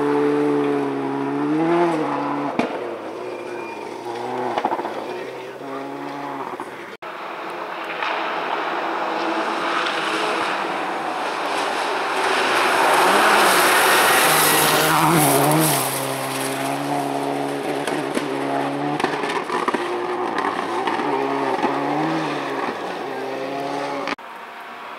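A rally car engine roars, its pitch rising and falling as it revs through the gears.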